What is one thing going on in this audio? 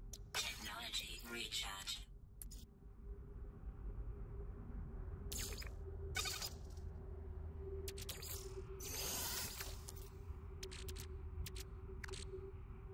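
Soft electronic blips and swooshes sound as menu items are selected.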